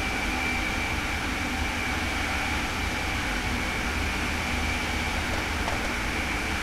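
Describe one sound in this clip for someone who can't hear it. A high-speed train rushes along the tracks with a steady roar and a high whine.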